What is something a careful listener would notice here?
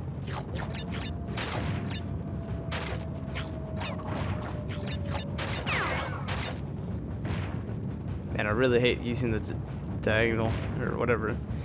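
Video game sound effects play, with quick whooshes and pops.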